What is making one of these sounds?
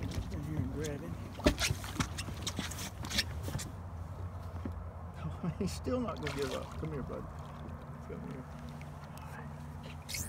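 A fishing reel clicks and whirs as line is wound in.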